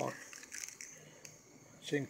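A plastic package crinkles in a hand.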